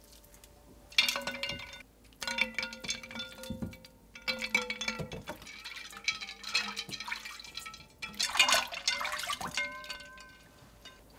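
Ice cubes clink against a glass bowl.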